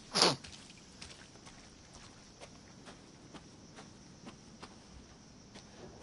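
Footsteps crunch slowly and steadily over dry leaves and wooden boards.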